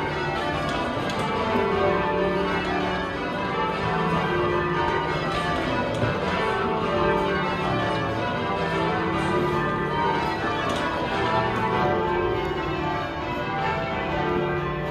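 Church bells ring loudly in a rapid, overlapping peal.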